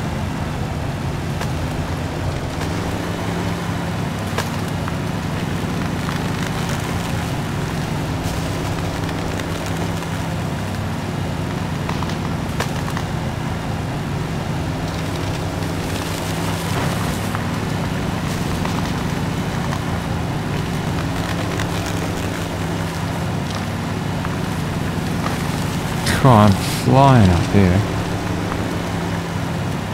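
A pickup truck's engine rumbles steadily as it drives over rough ground.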